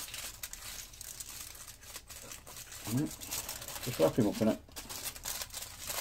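Plastic wrapping crinkles in someone's hands.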